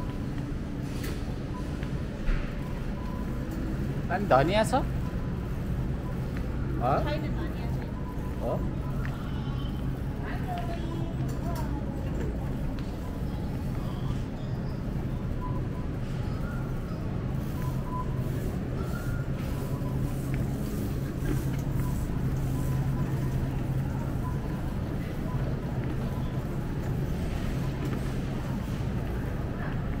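A shopping cart rattles as its wheels roll over a hard floor.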